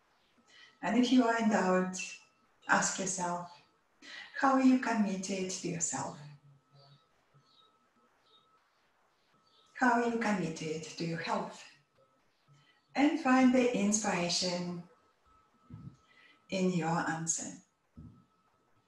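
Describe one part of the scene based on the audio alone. A woman speaks calmly and softly close to a microphone, with long pauses.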